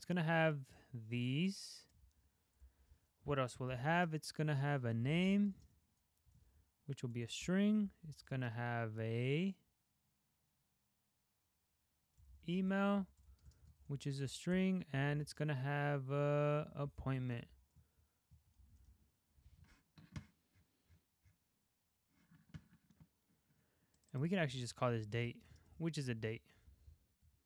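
A young man talks calmly and close to a microphone, in short bursts with pauses.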